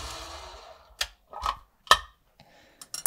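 A metal cup clinks down onto a scale.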